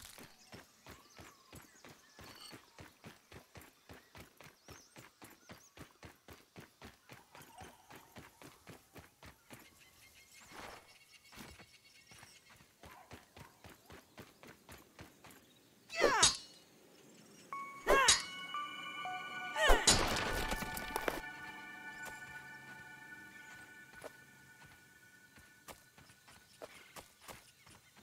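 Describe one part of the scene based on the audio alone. Quick footsteps patter steadily over sand.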